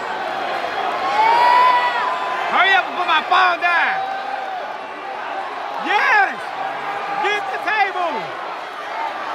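Fans whistle and shout loudly from the crowd.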